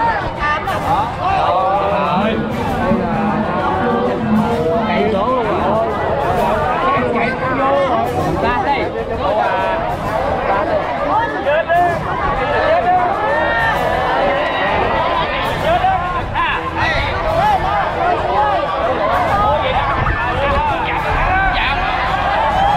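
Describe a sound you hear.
A large outdoor crowd chatters and shouts excitedly.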